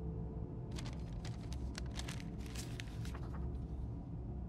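Paper rustles as an envelope is opened.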